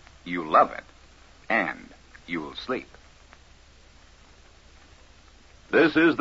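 A man speaks in short phrases through an old recording.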